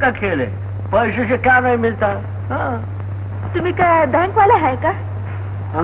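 A woman speaks with feeling.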